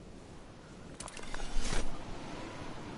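A video game glider snaps open with a whoosh.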